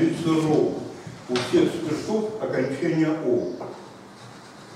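An elderly man speaks calmly in a slightly echoing room.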